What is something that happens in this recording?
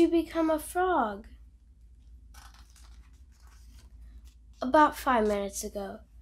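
Book pages turn.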